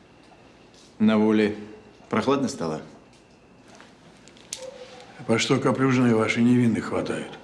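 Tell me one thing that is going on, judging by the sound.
An older man speaks with indignation, close by.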